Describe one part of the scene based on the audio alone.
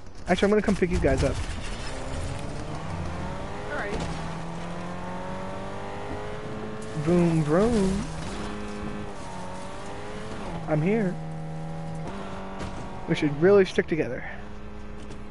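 A car engine hums steadily as a car drives over rough ground.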